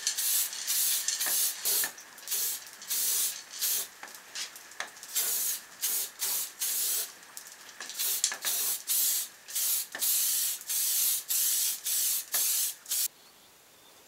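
A spray can hisses in short, repeated bursts close by.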